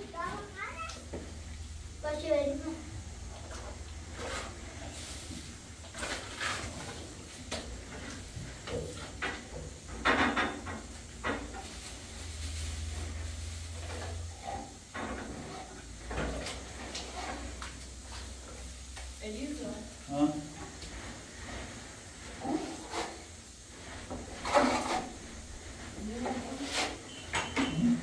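A trowel scrapes plaster across a wall.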